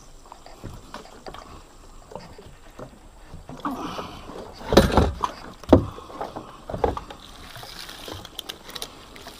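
Net mesh rustles and knocks against a boat.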